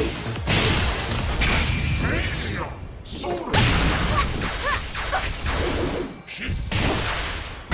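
Blades swish and clash in rapid strikes.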